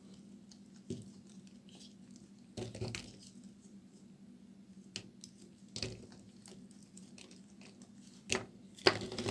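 Pieces of soap snap and crack as fingers break them.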